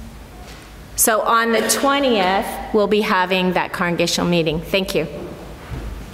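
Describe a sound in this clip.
An older woman speaks with animation into a microphone in a large echoing room.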